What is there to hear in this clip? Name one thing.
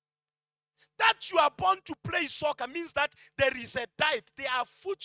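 A man speaks loudly and with passion through a microphone.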